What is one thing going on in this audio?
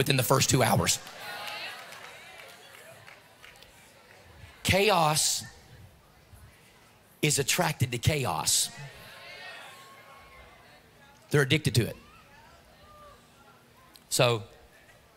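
A middle-aged man speaks with animation through a microphone and loudspeakers in a large echoing hall, in short bursts with pauses between them.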